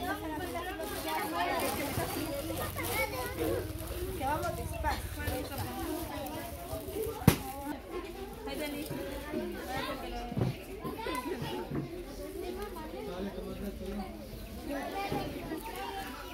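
Many children chatter and call out close by.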